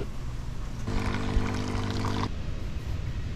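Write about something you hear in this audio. A coffee machine hums as it fills a cup.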